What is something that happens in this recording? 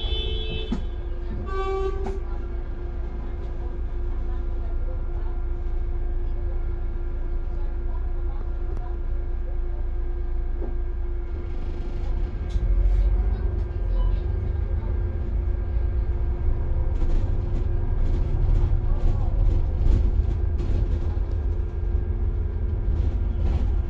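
Traffic rumbles steadily on a busy road, heard from a moving vehicle.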